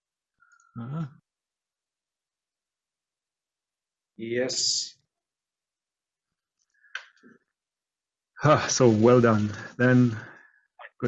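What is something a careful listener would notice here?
A man speaks over an online call, in short bursts with pauses.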